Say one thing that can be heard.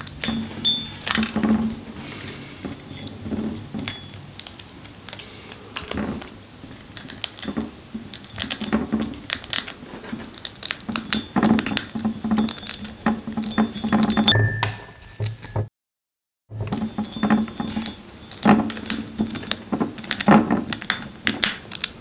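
A chipmunk nibbles and crunches on food close by.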